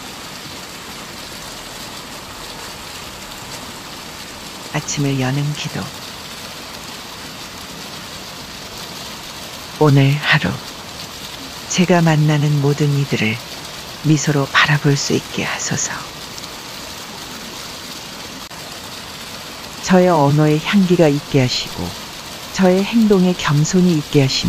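Fountain jets splash and gurgle steadily in a shallow channel.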